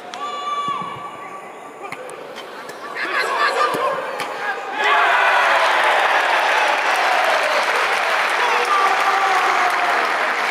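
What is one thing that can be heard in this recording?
A football is struck hard with a thud.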